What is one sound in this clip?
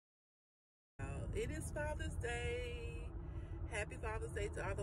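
A woman sings loudly and with animation close by.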